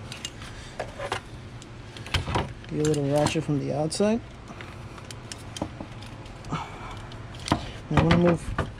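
Metal tools click and clink against engine parts.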